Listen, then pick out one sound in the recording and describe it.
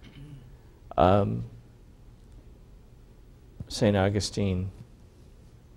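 An older man speaks a few short words through a microphone.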